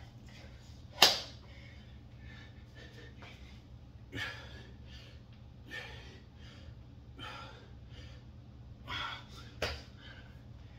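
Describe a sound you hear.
Dumbbells clank against a hard floor.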